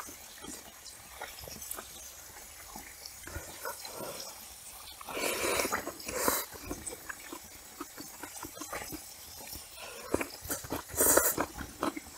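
A young woman chews food wetly, close up.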